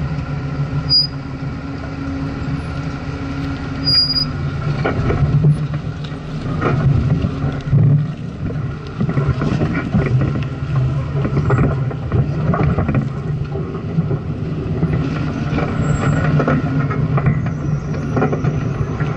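A vehicle engine rumbles low and steady close by.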